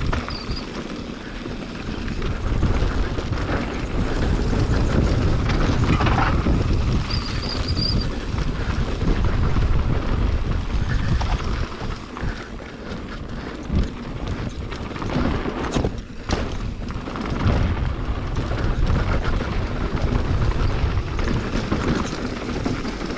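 Wind rumbles past outdoors.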